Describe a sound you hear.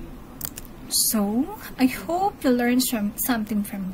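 A woman speaks calmly through a computer microphone.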